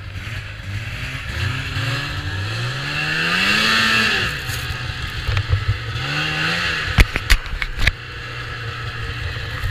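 A snowmobile engine revs up and rises in pitch as it drives off.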